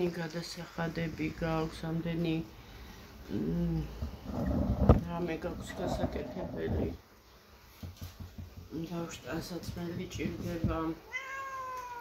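A middle-aged woman talks calmly and close to the microphone.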